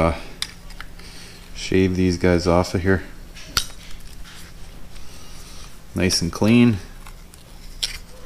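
A utility knife scrapes and cuts through a rubber cap.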